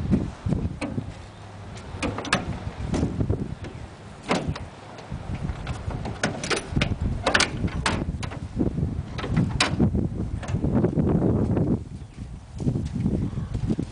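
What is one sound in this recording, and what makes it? A metal latch clanks on a cargo trailer's rear door.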